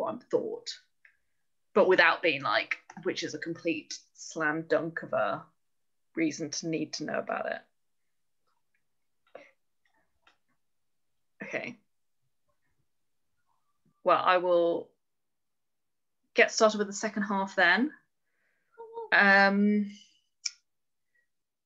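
A woman speaks calmly into a close microphone, pausing between phrases.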